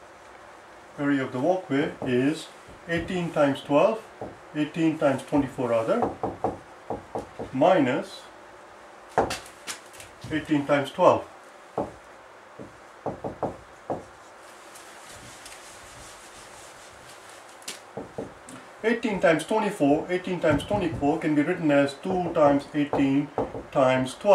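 A man speaks calmly, explaining as if teaching, close by.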